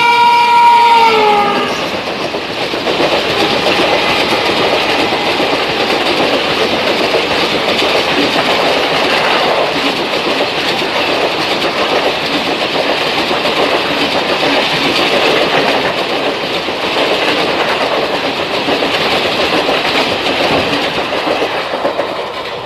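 A passenger train rushes past close by with a loud roar and clatter of wheels.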